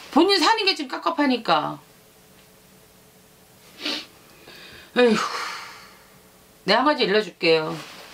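A middle-aged woman speaks expressively in a high, sing-song voice close to a microphone.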